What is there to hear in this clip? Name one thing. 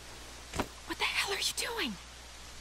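A young woman speaks anxiously, close by.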